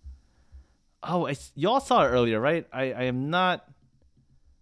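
A young man speaks with animation, close to a headset microphone.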